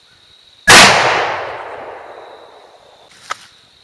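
A rifle fires a single loud shot that echoes and slowly fades outdoors.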